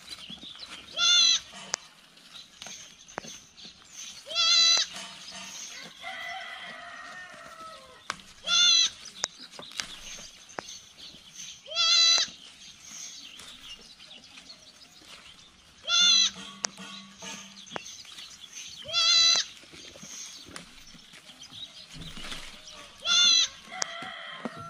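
A sheep bleats loudly several times, close by.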